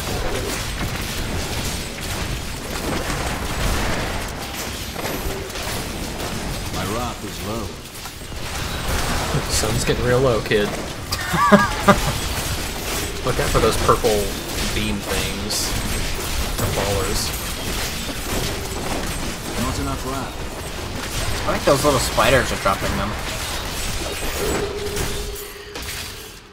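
Spell blasts whoosh and crackle amid clashing combat sounds.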